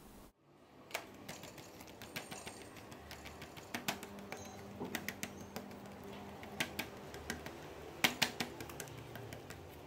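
Soft dough slaps and pats against a hard surface.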